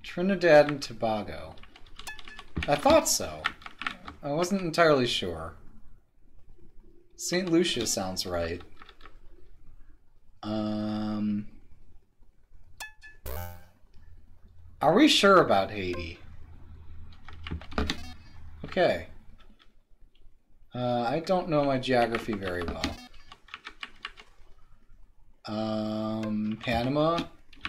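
Electronic game beeps sound in short bursts.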